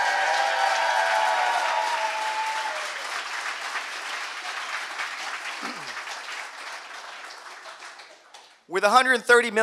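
An audience applauds in a large room, slowly dying down.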